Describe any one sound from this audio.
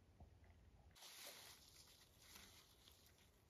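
Leaves rustle close by as a hand picks through low plants.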